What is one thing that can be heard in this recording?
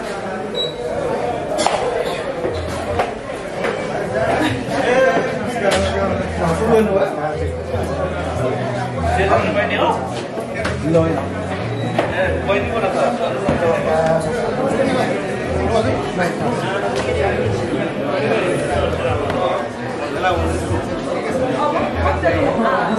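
A crowd of men and women chatter in a room.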